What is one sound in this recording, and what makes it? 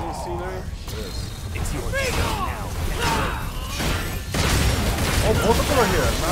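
Blades slash and strike in quick bursts of fighting.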